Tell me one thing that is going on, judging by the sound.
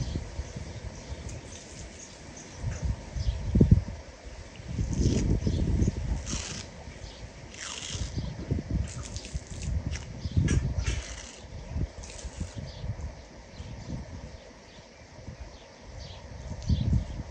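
A knife slices through raw meat with soft, wet sounds.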